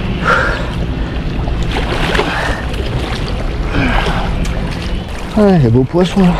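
A large catfish thrashes and splashes in shallow water.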